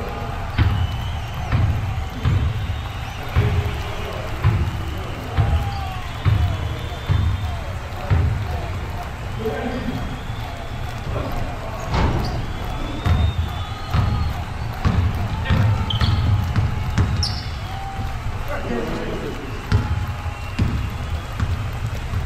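A basketball bounces with echoing thumps on a hardwood floor in a large hall.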